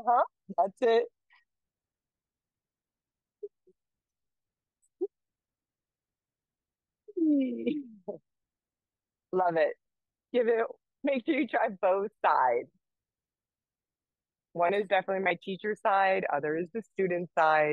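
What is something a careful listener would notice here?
A young woman speaks calmly and cheerfully into a nearby microphone, with pauses.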